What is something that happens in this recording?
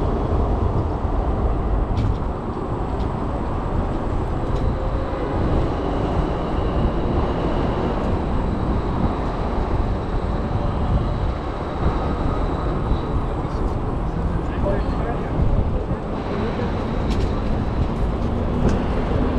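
Wind rumbles loudly past a moving bicycle.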